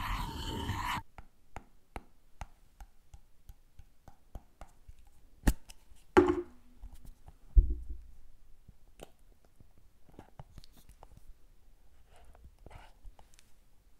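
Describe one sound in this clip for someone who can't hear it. Fingernails tap on a plastic jar close to a microphone.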